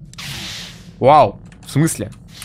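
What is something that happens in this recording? A lightsaber ignites with a buzzing hum.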